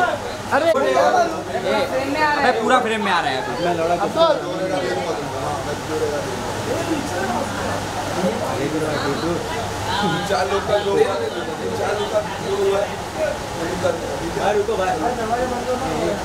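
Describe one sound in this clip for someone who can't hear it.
A young man talks on a phone nearby.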